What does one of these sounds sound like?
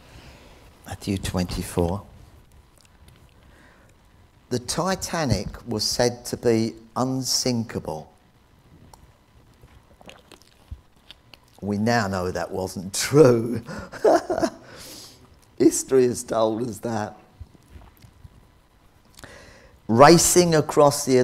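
An elderly man speaks calmly into a microphone, in pauses.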